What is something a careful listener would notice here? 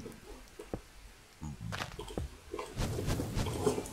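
Stone blocks thud dully as they are placed and broken.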